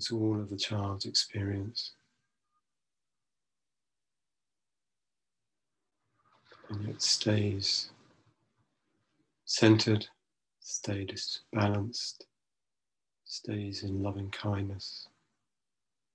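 A middle-aged man speaks slowly and calmly, with long pauses, heard through an online call.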